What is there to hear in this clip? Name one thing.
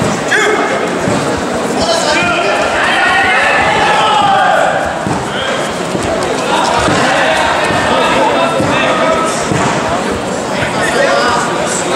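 A crowd of spectators shouts encouragement in a large echoing hall.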